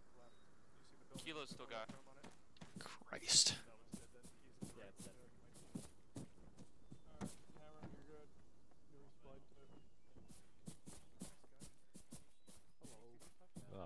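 Footsteps crunch steadily through grass and dirt.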